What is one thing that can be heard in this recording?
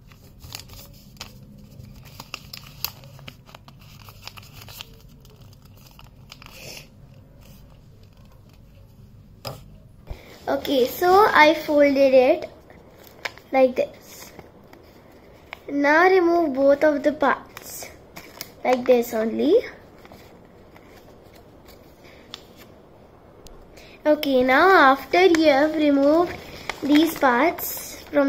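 Paper crinkles as it is folded by hand.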